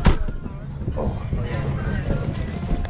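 A boot crunches into snow.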